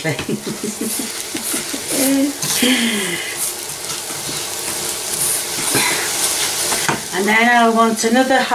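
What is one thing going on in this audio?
A wooden spoon stirs and scrapes grains in a metal pot.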